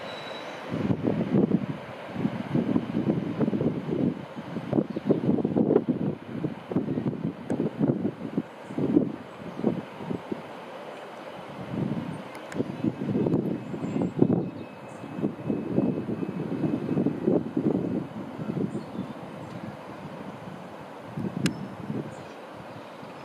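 A train rumbles away along the tracks and fades into the distance.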